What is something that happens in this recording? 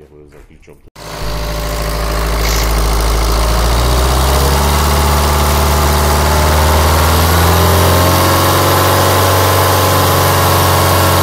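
A car engine starts and runs loudly at a steady idle.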